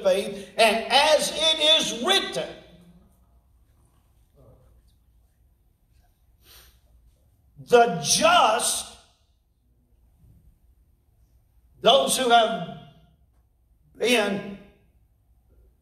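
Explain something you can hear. A middle-aged man speaks with animation in bursts through a microphone, in a large echoing room.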